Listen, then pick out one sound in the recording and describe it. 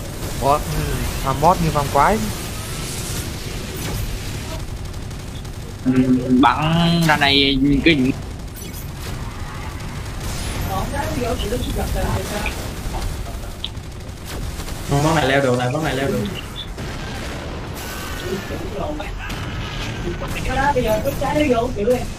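Game effects whoosh and blast continuously.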